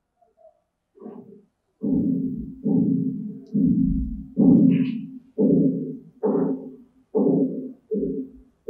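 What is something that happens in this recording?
A man speaks calmly and slowly, as if teaching.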